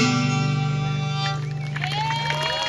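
A fiddle plays a long final note.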